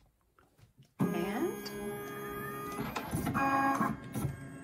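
A printer hums and whirs.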